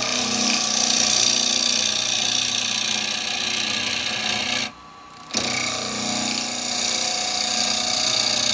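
A chisel cuts into spinning wood with a rough, hissing scrape.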